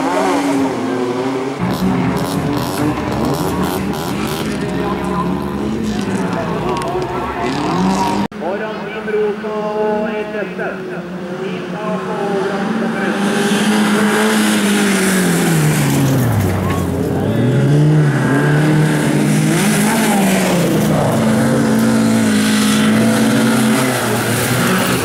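Several car engines roar and rev hard as they race past.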